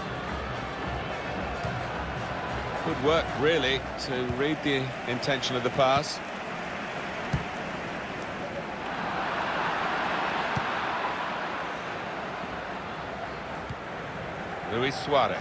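A stadium crowd roars steadily, swelling a little midway.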